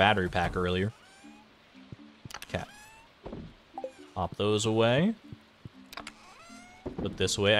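Short electronic chimes and blips sound from a video game.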